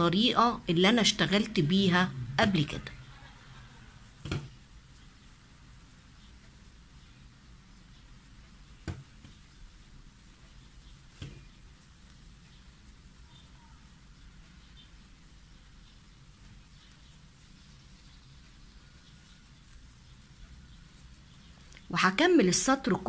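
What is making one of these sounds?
A crochet hook softly works through yarn.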